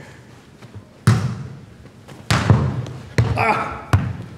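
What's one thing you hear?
A football is kicked with sharp thumps that echo in a large hall.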